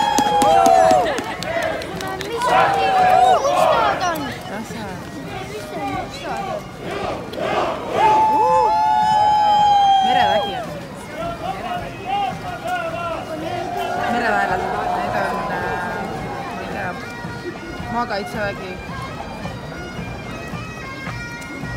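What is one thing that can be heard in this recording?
A crowd cheers and whistles along the street outdoors.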